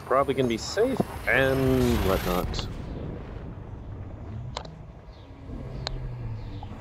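A spaceship's engine rumbles low and steady.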